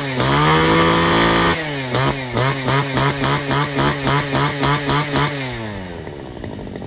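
A small petrol engine revs high in quick pulsing bursts.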